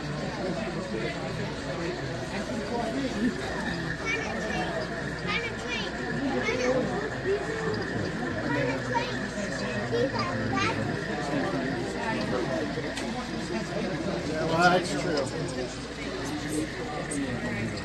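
A model diesel locomotive rolls along its track.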